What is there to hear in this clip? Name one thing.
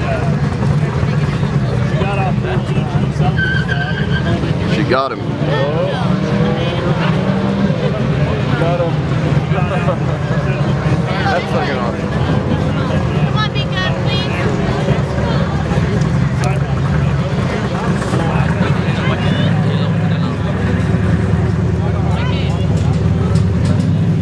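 Men talk nearby in the open air.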